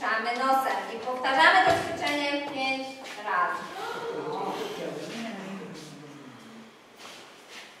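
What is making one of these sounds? A group of women and children sing together.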